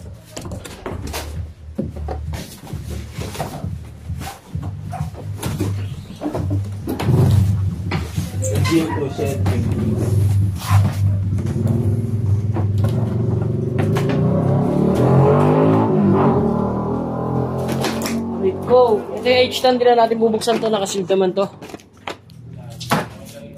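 Styrofoam packing squeaks and rubs.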